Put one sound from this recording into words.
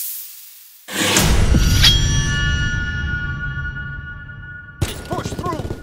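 A metallic impact rings out and fades.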